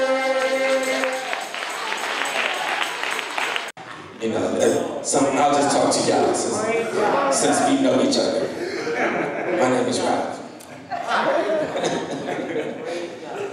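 A group of men sing together through microphones in a large echoing hall.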